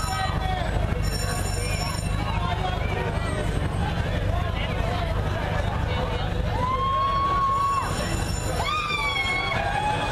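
A trolley bus engine rumbles low as it drives slowly past.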